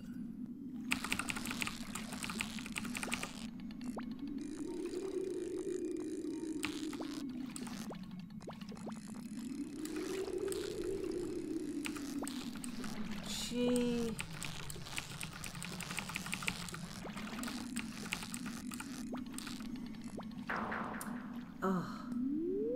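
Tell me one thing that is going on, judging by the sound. A fishing reel clicks and whirs rapidly.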